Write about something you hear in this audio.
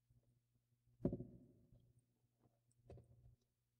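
An electric guitar is strummed with a ringing chord.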